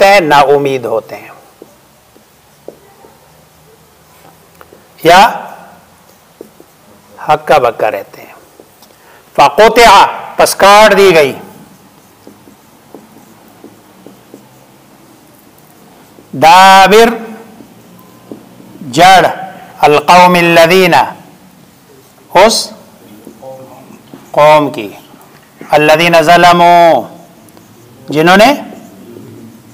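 A man chants aloud in short, melodic phrases with pauses between them.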